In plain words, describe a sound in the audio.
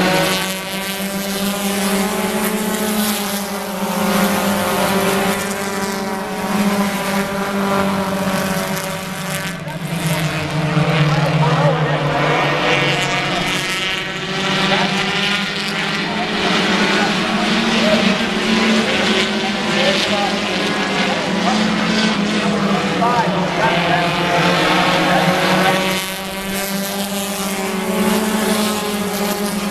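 Car engines rise and fall in pitch as the cars pass by.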